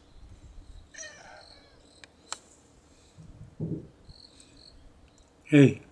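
A cat meows nearby.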